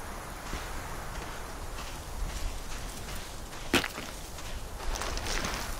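Bare feet squelch in wet mud.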